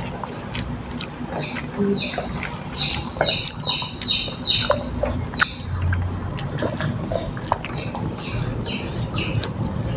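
A young person chews and smacks food noisily, close by.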